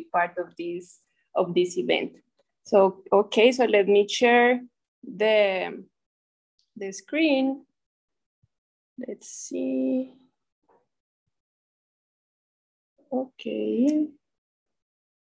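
A woman speaks calmly over an online call, in short bursts with pauses.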